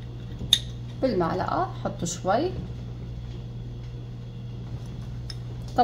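A spoon clinks against a glass jar.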